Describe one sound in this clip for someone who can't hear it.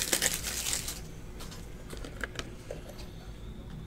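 A hand picks up a small box from a table with a soft scrape.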